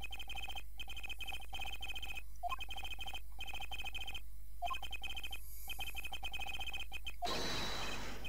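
Short electronic beeps tick rapidly, in quick bursts.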